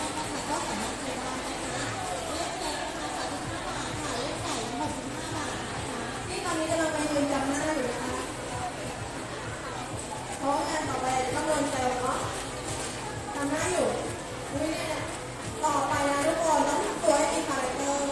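A young woman talks on a phone close by.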